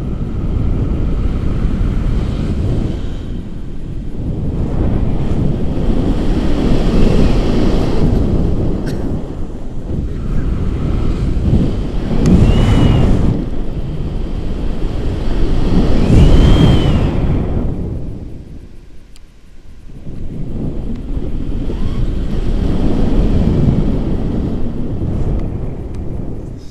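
Strong wind rushes and buffets past close by.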